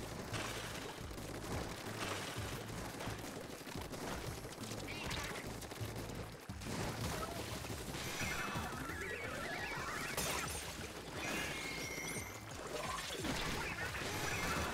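Ink weapons splat and spray in quick bursts.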